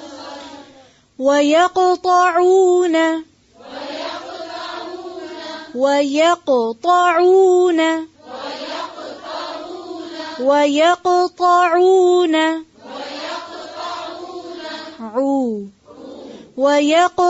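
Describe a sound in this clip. A woman recites in a slow, melodic chant, close to a microphone.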